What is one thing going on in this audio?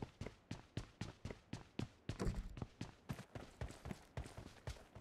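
Footsteps patter on soft ground outdoors.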